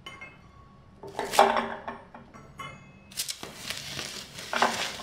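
Plastic bubble wrap crinkles and rustles as it is handled.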